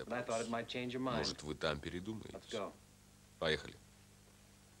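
A middle-aged man speaks urgently up close.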